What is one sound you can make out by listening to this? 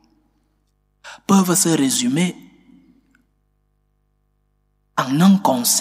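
A man speaks calmly and expressively into a microphone, with a slight echo.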